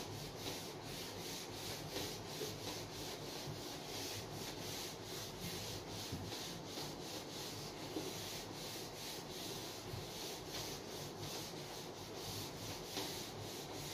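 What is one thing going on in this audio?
An eraser rubs back and forth across a whiteboard in quick, steady strokes.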